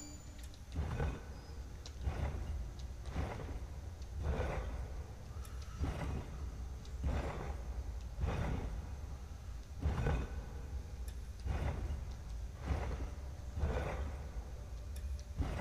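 Stone segments of a pillar grind as they turn, again and again.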